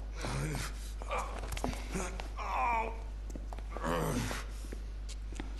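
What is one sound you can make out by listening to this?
A woman speaks anxiously in a hushed voice.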